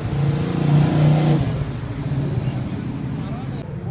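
An older American car accelerates past.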